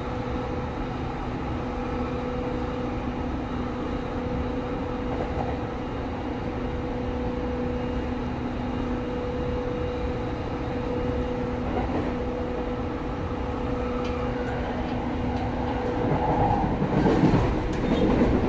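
The carriage connection rattles and creaks as the train sways.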